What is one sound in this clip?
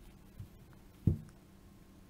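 A plastic phone case clicks into place.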